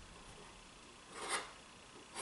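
A pencil scratches a line along wood.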